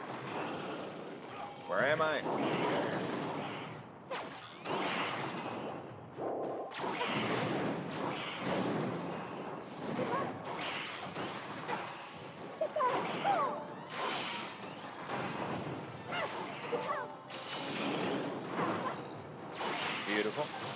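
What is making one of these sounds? Heavy blows and magic blasts crash in a fast game battle.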